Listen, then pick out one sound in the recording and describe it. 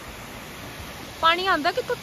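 A stream rushes over rocks.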